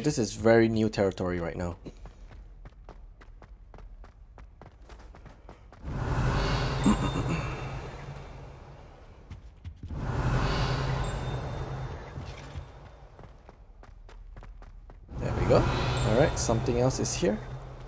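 Footsteps tap on stone floors.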